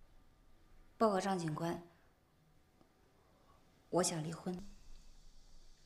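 A young woman speaks quietly and hesitantly, close by.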